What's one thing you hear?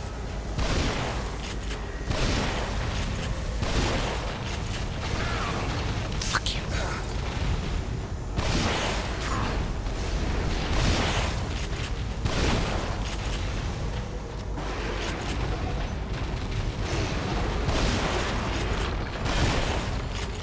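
A monster roars and groans.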